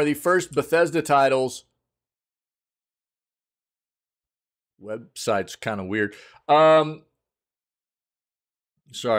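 A young man talks animatedly into a close microphone, in short bursts with pauses.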